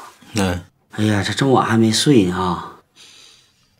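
A middle-aged man answers calmly on a phone.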